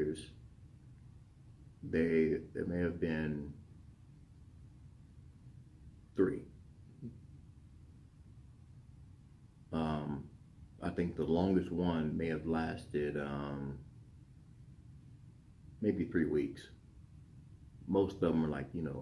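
A middle-aged man speaks calmly and close by, in short bursts with pauses.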